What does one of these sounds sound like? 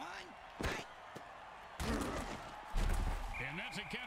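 Armoured players crash together in a heavy tackle.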